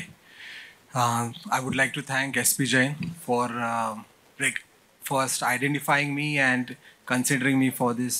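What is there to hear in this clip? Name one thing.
A man speaks into a microphone with animation, heard through loudspeakers.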